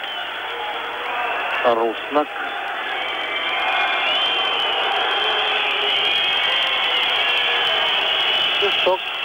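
A large crowd cheers and whistles in an ice arena.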